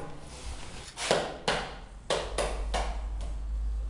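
Hands tap ceramic tiles down onto a floor.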